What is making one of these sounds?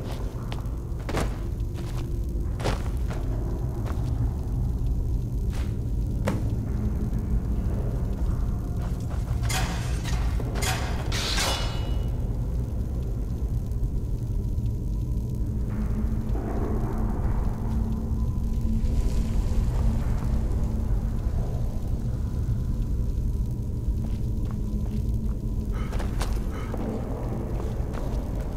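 Electric magic crackles and hums steadily close by.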